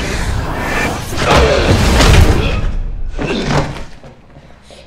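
Heavy blows and scuffling thud loudly in a fight.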